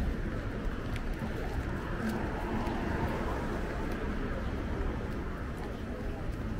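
Footsteps tap on a pavement outdoors.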